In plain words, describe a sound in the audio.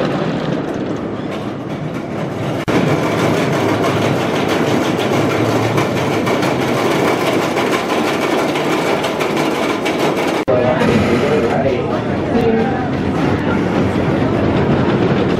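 A wooden roller coaster rumbles and clatters loudly along its track.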